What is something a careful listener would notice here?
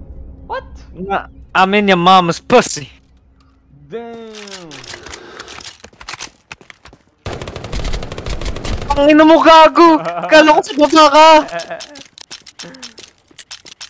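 A young man talks excitedly over a microphone.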